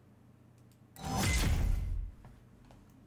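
A video game plays a loud whooshing reward sound.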